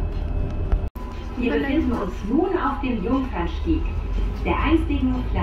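A city bus drives by on a busy street.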